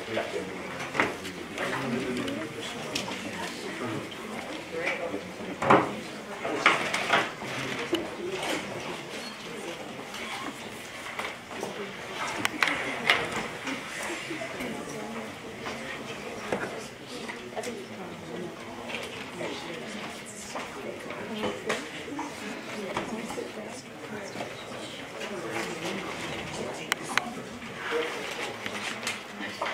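Several adults chat at once in a room with a slight echo.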